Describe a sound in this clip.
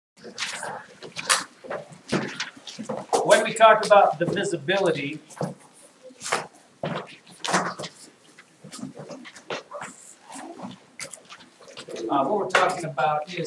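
A man talks to a room in a calm, teaching voice.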